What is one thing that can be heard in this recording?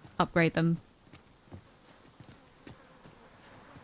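Footsteps patter softly over grass.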